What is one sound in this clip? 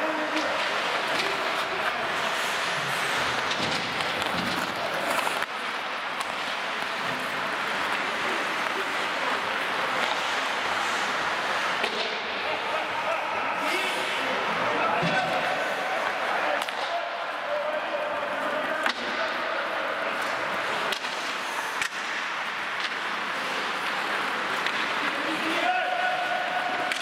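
Ice skates scrape and hiss across the ice in a large echoing hall.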